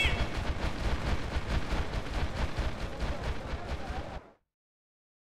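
Heavy hooves thump rapidly on dirt.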